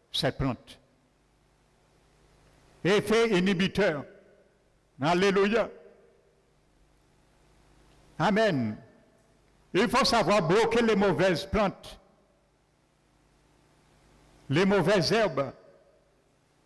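A man speaks slowly and calmly through a microphone, in short phrases with pauses, in a room that echoes a little.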